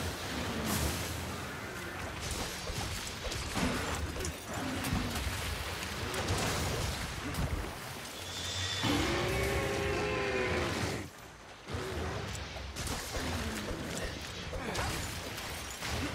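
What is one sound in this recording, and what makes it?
Heavy blade strikes land with loud hits.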